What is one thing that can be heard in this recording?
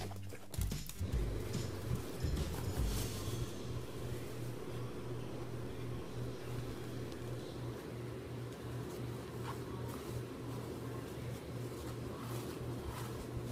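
A dog tears and shreds paper.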